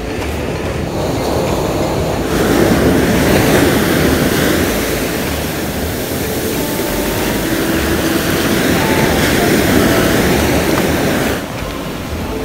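Shallow surf washes and fizzes over the sand.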